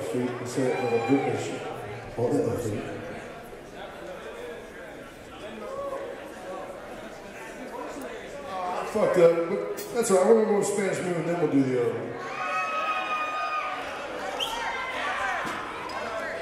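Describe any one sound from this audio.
A band plays live music with electric guitars.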